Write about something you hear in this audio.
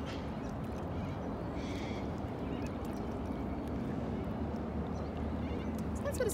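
A paddle splashes and swishes through water in steady strokes.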